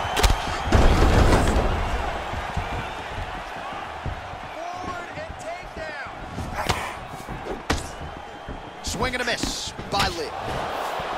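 Fists and kicks thud against bodies in sharp slaps.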